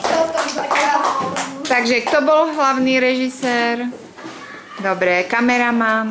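Young girls sing together close by.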